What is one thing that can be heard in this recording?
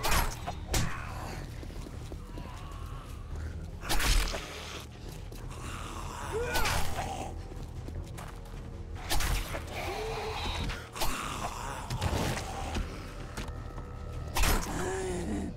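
Knife blows land with dull, wet thuds.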